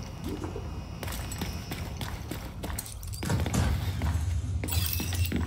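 Boots tread steadily on a hard floor and then up stairs.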